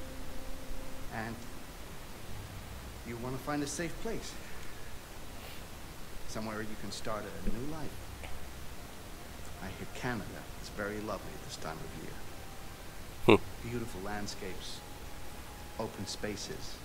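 A middle-aged man speaks calmly in a deep voice, with long pauses.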